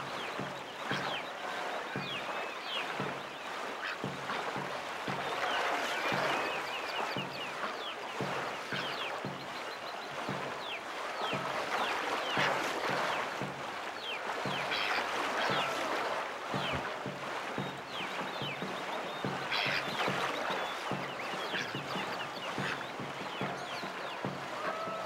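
Water rushes steadily past a racing canoe.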